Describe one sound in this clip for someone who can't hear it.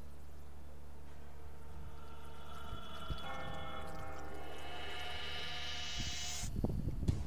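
Eerie electronic music swells and rises in pitch, then cuts off abruptly.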